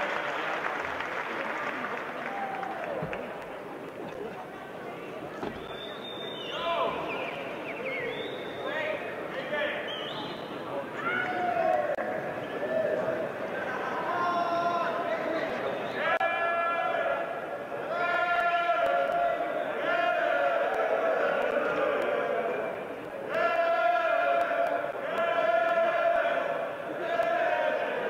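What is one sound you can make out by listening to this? A large indoor crowd murmurs and chatters in an echoing hall.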